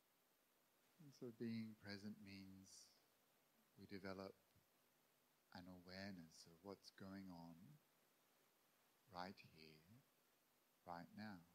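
A man speaks calmly and slowly into a microphone, with pauses.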